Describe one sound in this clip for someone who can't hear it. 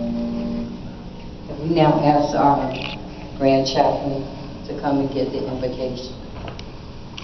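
A group of men and women sings together in a large echoing hall.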